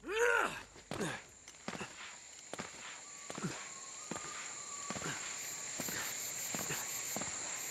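Footsteps run over grass and leaves.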